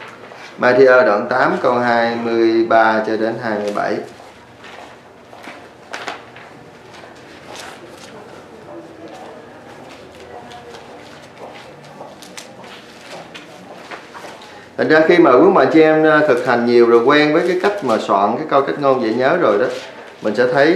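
A man speaks calmly and clearly close to a microphone.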